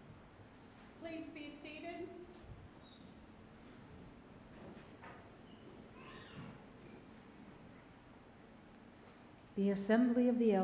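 A middle-aged woman speaks into a microphone.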